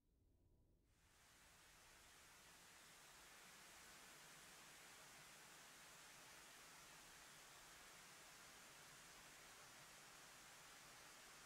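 A missile rushes through the air with a steady hissing roar.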